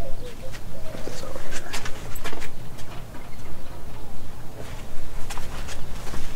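Objects clatter and rustle close by as a man handles them.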